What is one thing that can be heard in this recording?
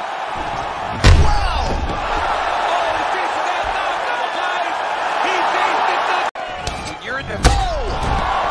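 A body thuds onto the mat.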